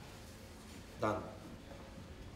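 A young man speaks loudly with animation close by.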